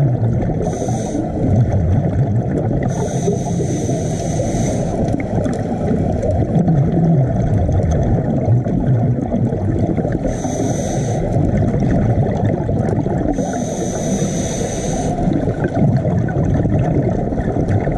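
Scuba air bubbles gurgle and rumble steadily underwater.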